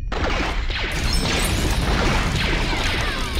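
An explosion bursts loudly.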